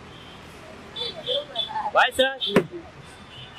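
Men nearby call out and talk excitedly.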